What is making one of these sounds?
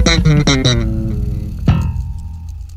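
A bass guitar plays a low melody.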